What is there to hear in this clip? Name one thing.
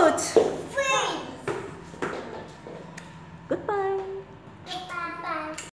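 A young child sings loudly nearby.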